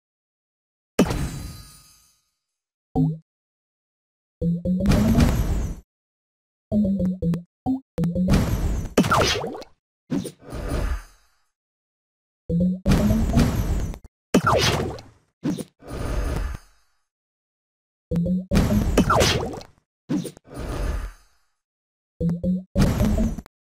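Game sound effects chime and pop as tiles clear.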